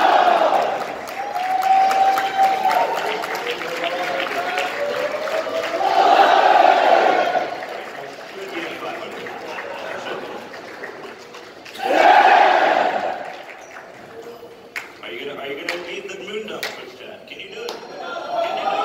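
Game music and sound effects play over loudspeakers in a large echoing hall.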